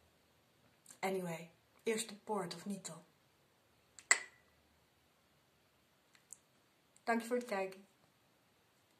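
A woman speaks calmly and softly, close by, in short phrases.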